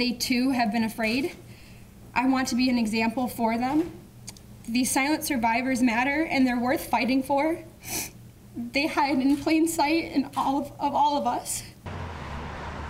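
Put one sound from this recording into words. A young woman speaks with emotion into a microphone.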